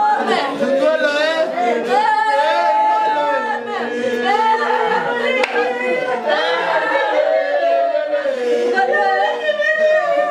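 An elderly woman wails and sobs loudly.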